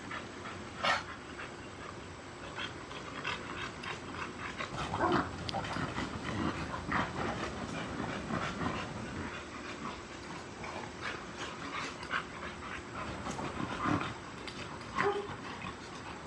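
Dog paws scuffle on concrete.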